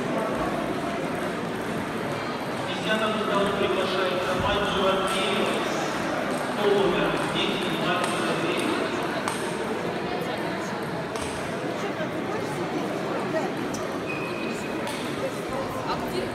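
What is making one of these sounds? Table tennis balls click against paddles and tables.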